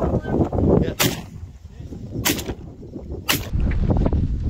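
A shotgun fires several shots outdoors.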